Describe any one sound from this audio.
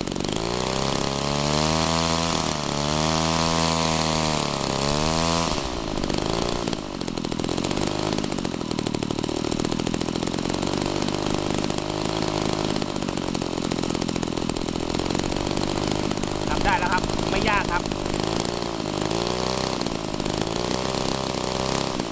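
A small two-stroke engine runs loudly close by, its pitch rising and falling as it revs.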